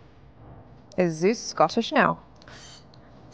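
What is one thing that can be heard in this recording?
A young woman laughs into a headset microphone.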